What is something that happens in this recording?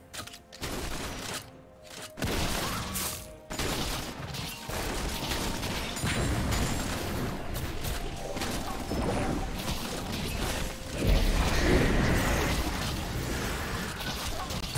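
Game spell effects and weapon hits clash and whoosh in a busy fight.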